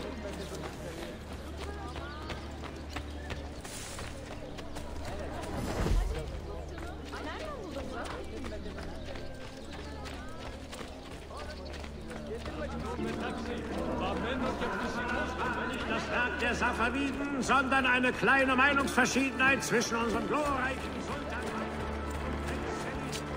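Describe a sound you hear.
Footsteps run quickly over stone and dirt.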